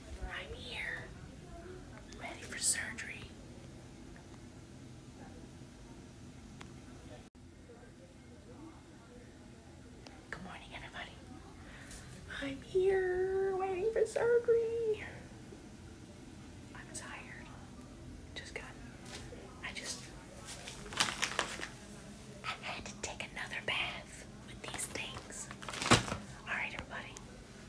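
A middle-aged woman talks close up with animation.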